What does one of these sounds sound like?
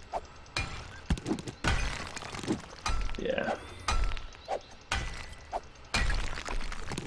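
A pickaxe strikes rock with sharp, repeated knocks.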